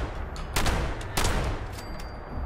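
Gunshots blast loudly.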